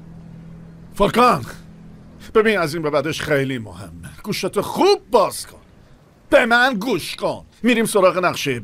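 A middle-aged man talks on a phone with feeling, close by.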